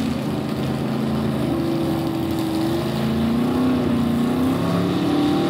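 A loud car engine rumbles deeply and roughly outdoors.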